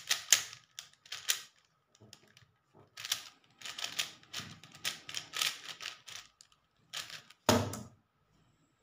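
Plastic puzzle cube pieces click and clatter as they are turned quickly.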